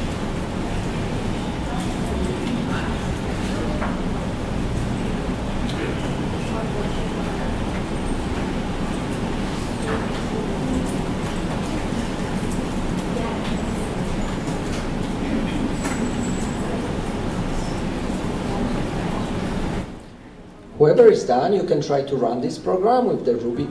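A young man speaks through a microphone.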